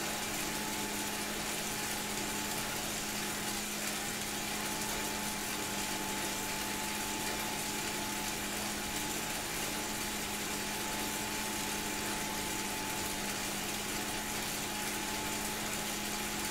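An indoor bike trainer whirs steadily as pedals turn.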